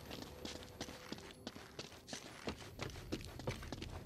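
Footsteps thud quickly on wooden planks.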